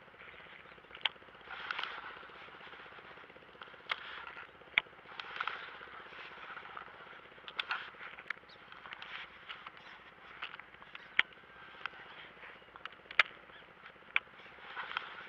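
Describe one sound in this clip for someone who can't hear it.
A fishing reel clicks and whirs close by.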